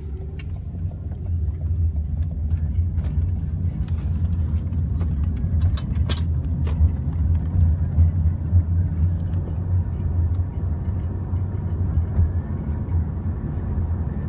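A car engine hums low and steady from inside a moving car.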